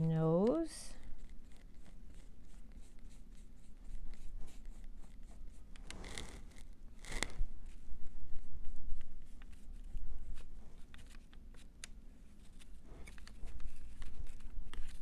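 A small tool taps and scrapes softly on paper, up close.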